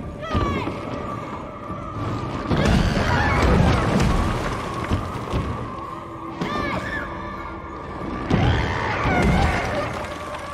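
A huge creature thumps and scrapes heavily across a floor.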